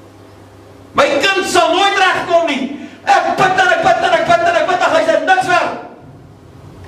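An older man preaches with animation through a microphone.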